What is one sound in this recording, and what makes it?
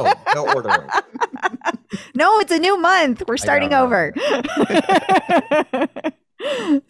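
A young woman laughs loudly into a close microphone over an online call.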